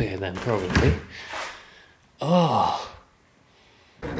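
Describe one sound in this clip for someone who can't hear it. A small fridge door is pulled open.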